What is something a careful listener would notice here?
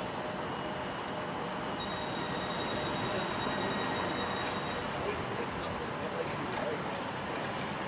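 A stopped train hums steadily nearby.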